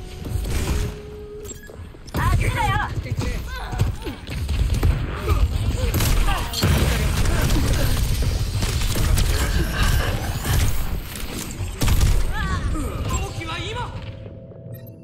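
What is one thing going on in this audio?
Rapid gunshots and loud blasts crack.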